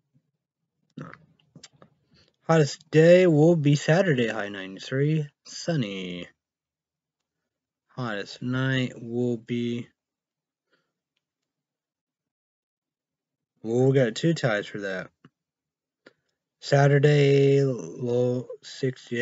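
A young man talks calmly and close to a microphone, in bursts with pauses.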